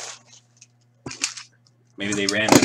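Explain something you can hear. A blade slices through plastic wrap.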